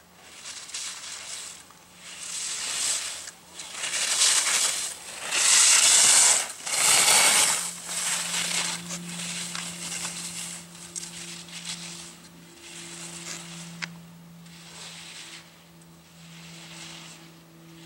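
Skis scrape and hiss over hard snow in repeated bursts, loudest as the skier passes close.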